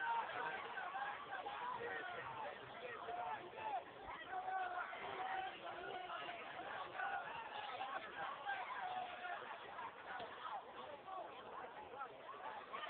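Young girls shout and call out to each other outdoors.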